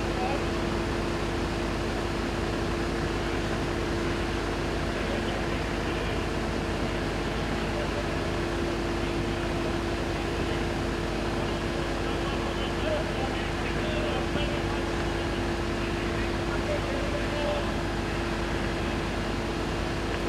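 A fire truck's engine hums steadily nearby.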